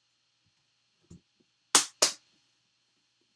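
A metal case clicks and knocks as it is handled.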